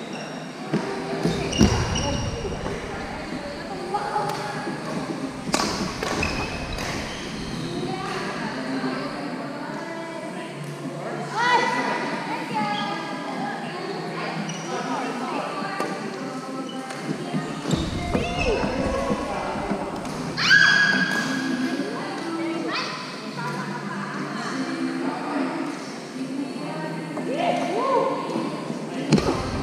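Rackets hit a shuttlecock with sharp pops in a large echoing hall.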